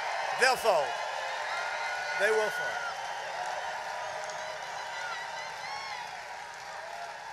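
A large crowd cheers and chatters steadily in a big echoing hall.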